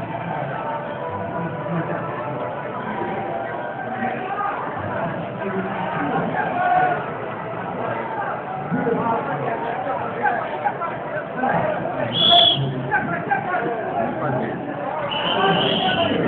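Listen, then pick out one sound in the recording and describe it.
A large crowd chatters and murmurs outdoors all around.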